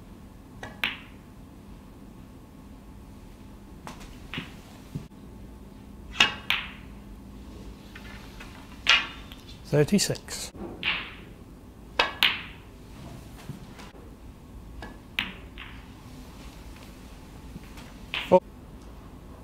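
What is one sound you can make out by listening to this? A cue strikes a snooker ball with a sharp click.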